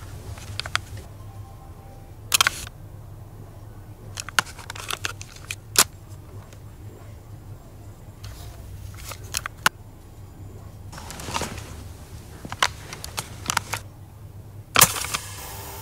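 Buttons on a portable cassette player click sharply.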